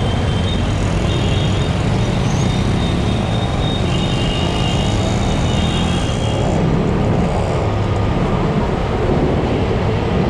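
Traffic hums and engines drone all around.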